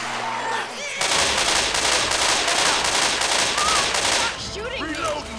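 A submachine gun fires rapid bursts of shots.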